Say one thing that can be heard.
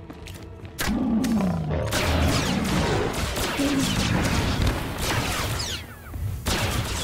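Beasts snarl and growl in a fight.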